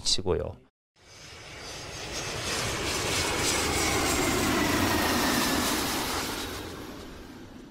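A jet airliner roars low overhead as it comes in to land.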